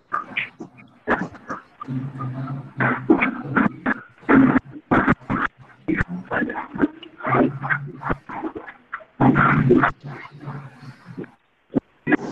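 A boy speaks through an online call.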